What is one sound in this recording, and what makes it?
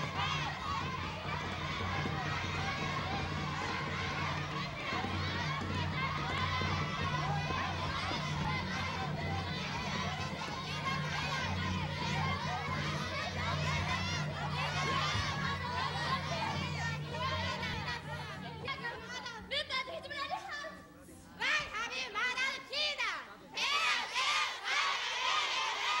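A crowd of young men and women shout and cry out excitedly in a large hall.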